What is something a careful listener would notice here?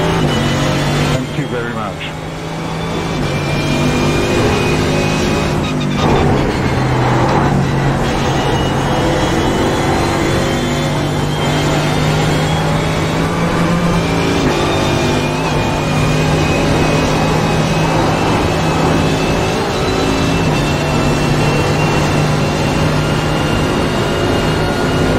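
A racing car engine roars loudly, revving up and down through the gears.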